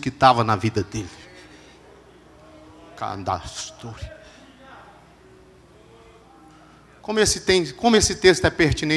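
A man preaches with animation through a microphone in an echoing hall, in bursts with pauses.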